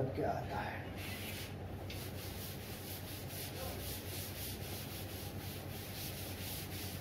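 A cloth wipes a board with quick, repeated brushing strokes.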